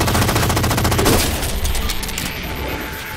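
An explosion bursts with a loud crack.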